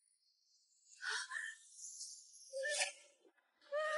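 A young woman cries out in anguish.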